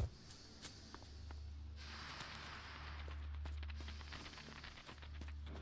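Footsteps patter quickly on dirt.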